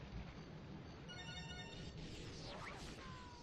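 A laser weapon fires with a buzzing zap.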